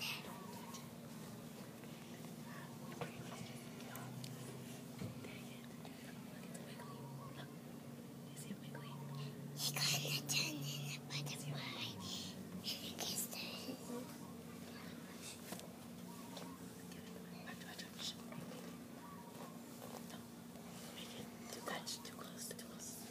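Young children talk quietly nearby.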